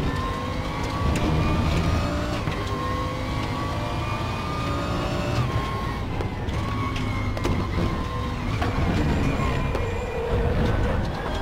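A racing car engine roars steadily, its pitch rising and falling with gear shifts.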